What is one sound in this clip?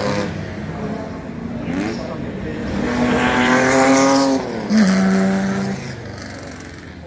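Vintage racing car engines roar past, rising in pitch as they accelerate.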